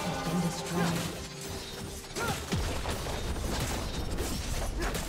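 Video game spell effects whoosh and crackle in a busy fight.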